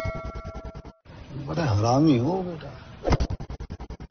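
An elderly man speaks sternly.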